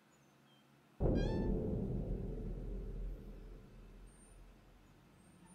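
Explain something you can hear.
A door creaks slowly open.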